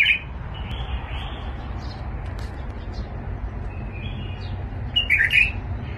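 Small birds chirp in short bursts.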